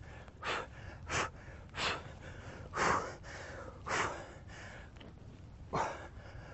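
A man exhales sharply in rhythm with his effort.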